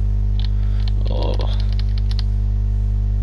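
A fishing reel clicks as line winds in.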